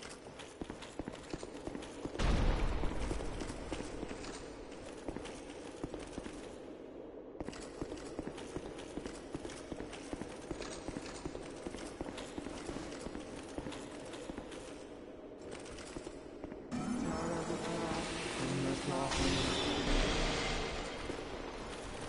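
Armored footsteps clatter quickly on stone.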